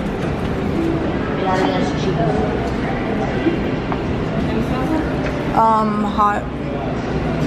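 Several adults chatter in a busy, noisy room.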